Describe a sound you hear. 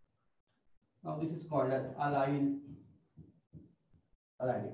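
A man speaks calmly, explaining, close to a microphone.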